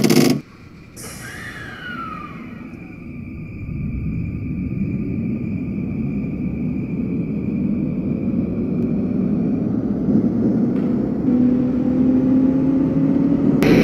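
An electric train's motor whines and rises steadily in pitch as the train pulls away.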